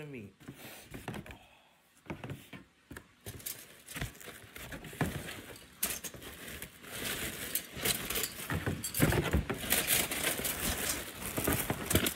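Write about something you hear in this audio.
Cardboard rustles and scrapes close by as it is handled.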